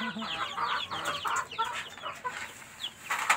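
Chickens cluck and chatter close by.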